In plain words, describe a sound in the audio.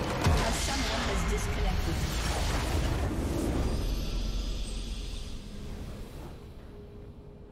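A loud game explosion booms and crackles, then fades away.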